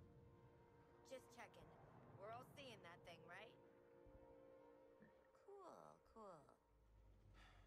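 A young woman speaks playfully.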